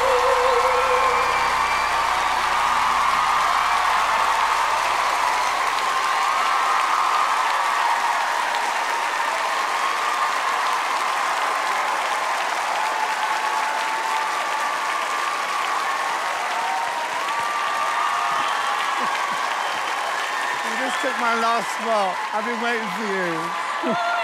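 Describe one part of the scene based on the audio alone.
A large crowd cheers and applauds loudly in a big echoing hall.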